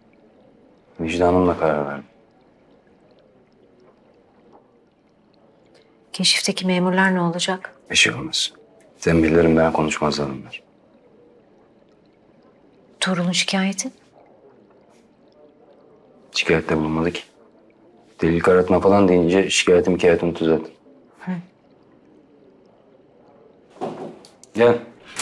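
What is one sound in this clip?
A man speaks quietly and seriously, close by.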